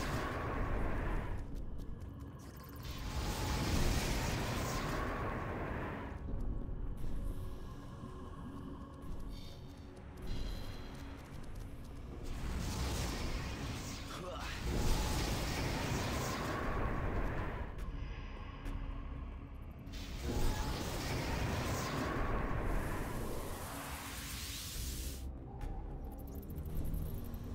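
Fire spells roar and whoosh in repeated bursts.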